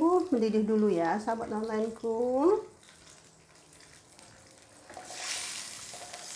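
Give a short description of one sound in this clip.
Sauce bubbles and simmers softly in a pan.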